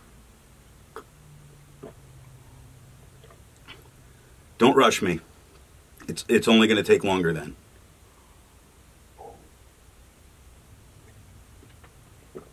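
A man sips and swallows a drink.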